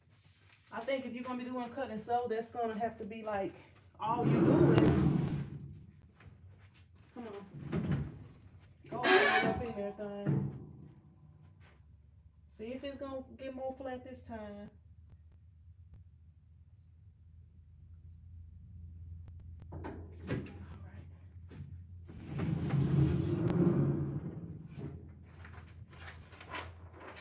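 A large sheet of paper rustles and slides.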